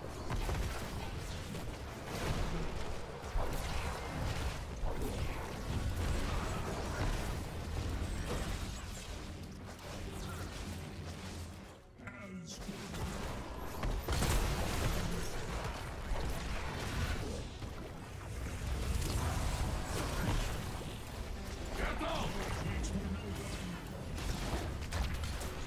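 Game spell effects and blasts crackle and boom in a busy battle.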